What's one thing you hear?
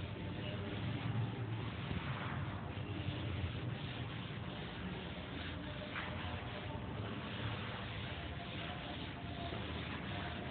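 A duster rubs across a chalkboard.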